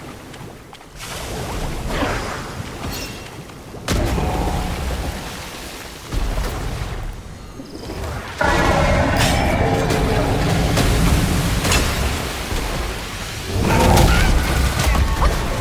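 A large beast roars and thrashes through water.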